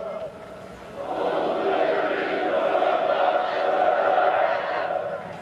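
A large group of soldiers shouts in unison.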